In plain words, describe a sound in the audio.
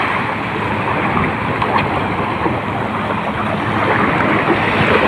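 Small waves lap and wash over the shore.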